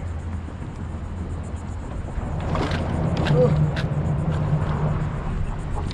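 A fishing reel clicks and whirs as a line is reeled in.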